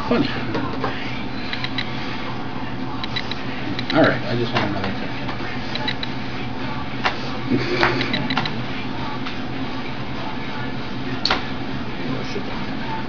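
Cards and game pieces click and tap on a table.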